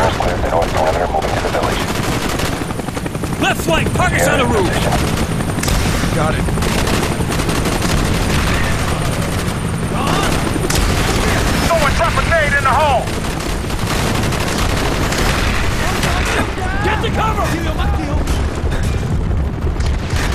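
Explosions and gunfire rumble steadily in the background.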